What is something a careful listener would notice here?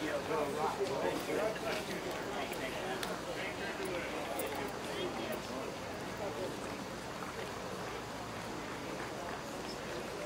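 Footsteps shuffle on pavement as a group walks.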